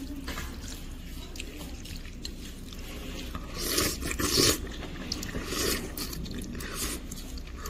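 Soup drips and splashes back into a bowl.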